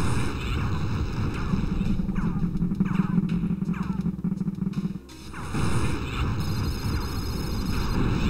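An electric zap crackles and buzzes.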